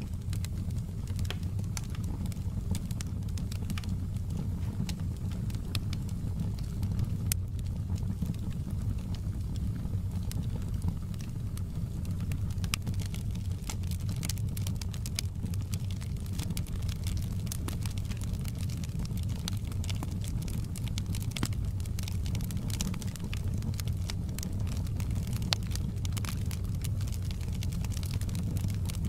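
Flames roar steadily in a wood fire.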